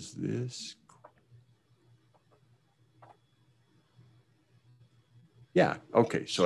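A middle-aged man speaks calmly into a microphone, heard through an online call.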